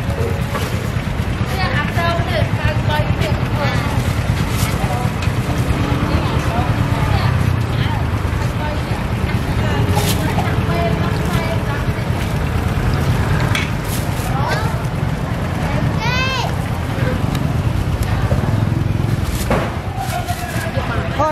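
Distant chatter fills a busy outdoor market.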